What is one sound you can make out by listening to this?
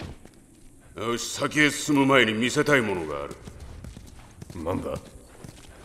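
Another man answers briefly.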